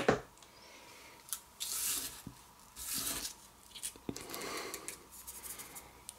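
Fingers brush and rub across a sheet of paper.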